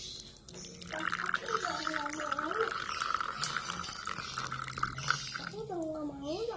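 Coffee pours from a pot into a glass with a steady trickle.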